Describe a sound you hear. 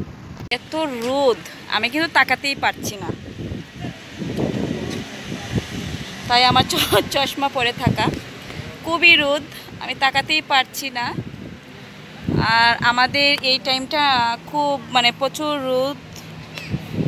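A young woman talks animatedly, close to the microphone.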